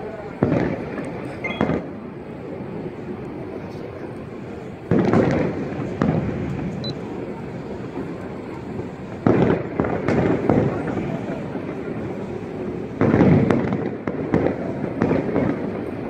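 Fireworks boom and crackle in the distance, echoing off buildings.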